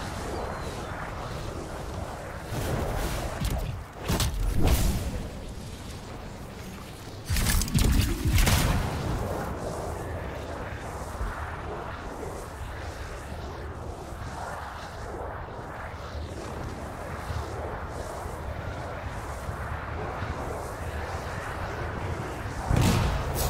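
Jet thrusters roar in bursts.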